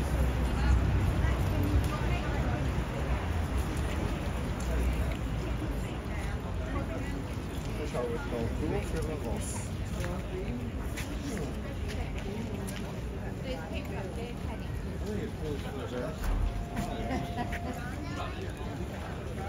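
A horse's hooves shift and clop on stone paving.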